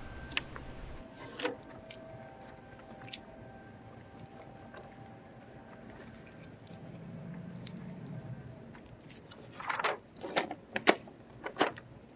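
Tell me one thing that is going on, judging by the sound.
Paper rustles and crinkles as it is peeled off.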